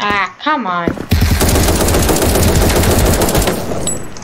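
Rapid gunfire rattles in fast bursts.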